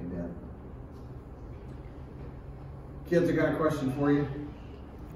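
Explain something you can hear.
A middle-aged man speaks calmly into a handheld microphone in a room with slight echo.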